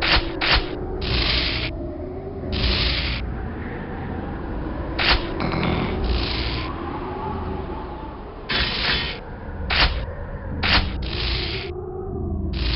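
An electric bolt crackles and buzzes.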